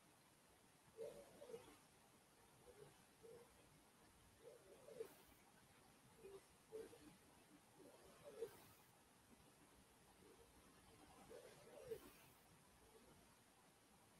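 An elderly woman speaks slowly and softly through a microphone over an online call, with long pauses.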